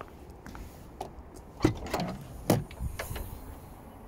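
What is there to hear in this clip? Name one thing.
A car tailgate latch clicks open.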